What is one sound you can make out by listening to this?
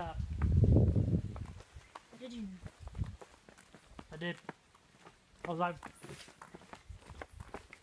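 Footsteps fall on a paved path.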